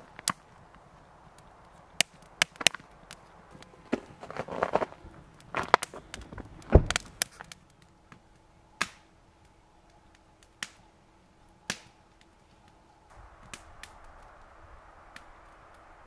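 A wood fire crackles and pops outdoors.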